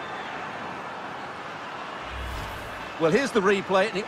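A large stadium crowd cheers steadily.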